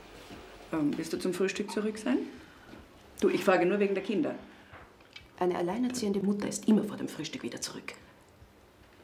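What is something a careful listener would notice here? A woman speaks quietly close by.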